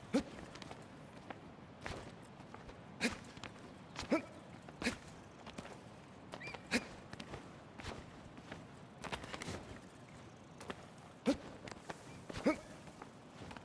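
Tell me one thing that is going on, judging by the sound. A young man grunts with effort.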